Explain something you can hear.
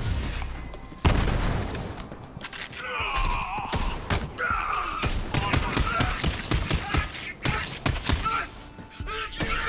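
A sniper rifle fires sharp shots.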